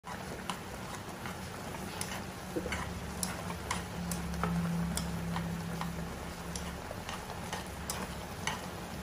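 Noodles and broth bubble and simmer in a pan.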